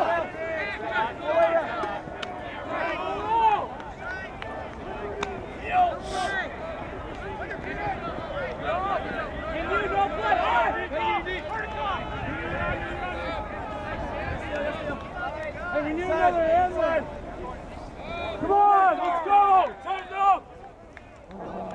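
Young men nearby shout and cheer loudly outdoors.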